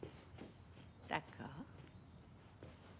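A woman speaks brightly nearby.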